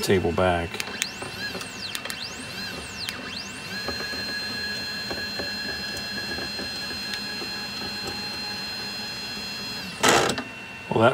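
Stepper motors whine as a small machine moves, rising and falling in pitch, then holding a steady high whine.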